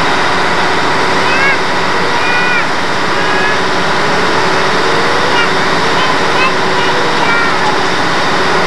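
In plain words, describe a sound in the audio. Young children call out and chatter nearby.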